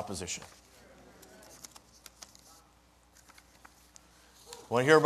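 Papers rustle as a man handles them.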